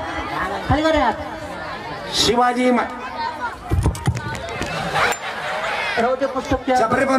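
A man sings loudly through a loudspeaker.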